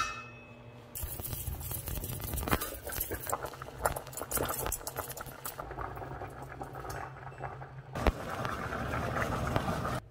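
Liquid bubbles and boils vigorously in a pot.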